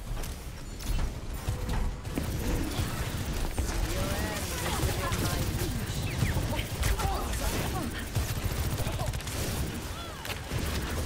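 Video game weapons fire in rapid bursts.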